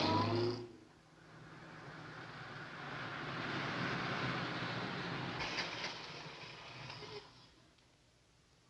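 A steam train hisses and rumbles nearby.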